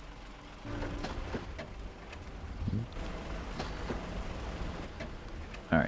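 A truck engine idles low and steady.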